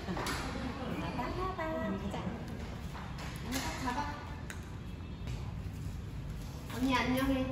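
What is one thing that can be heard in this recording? A small child babbles in a high voice.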